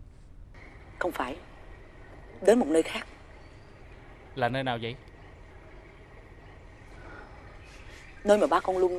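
A woman speaks close by with feeling.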